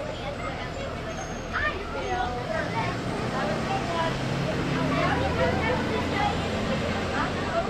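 Children chatter and call out nearby, outdoors.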